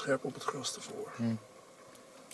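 Vultures flap their wings noisily close by.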